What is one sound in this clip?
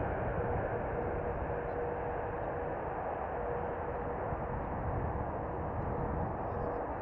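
Jet engines roar loudly as an airliner rolls along a runway.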